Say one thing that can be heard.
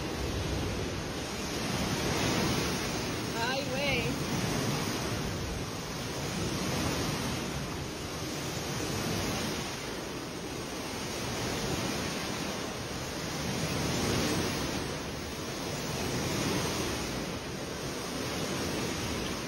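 Strong wind roars and gusts outdoors.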